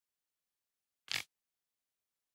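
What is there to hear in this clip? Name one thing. A game menu gives a short click as its page scrolls.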